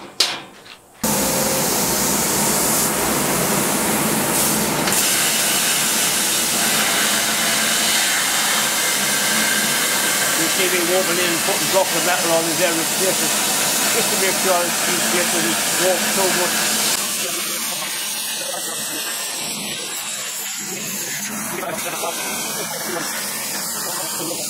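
A plasma torch cuts metal with a loud, steady hiss.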